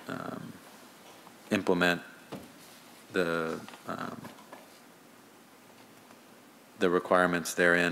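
A man speaks calmly into a microphone, pausing between phrases.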